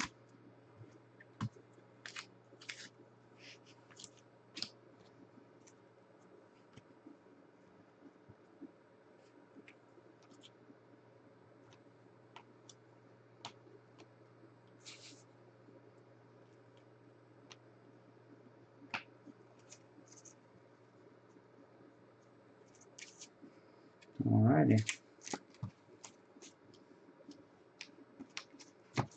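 Trading cards rustle and click as hands flip through them.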